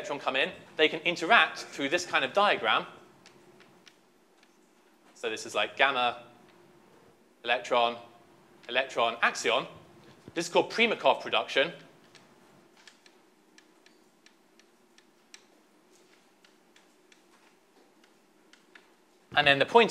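A man lectures calmly, heard through a microphone in a large room.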